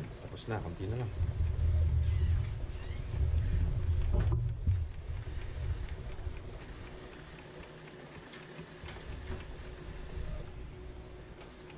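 A printer whirs as it feeds a sheet through.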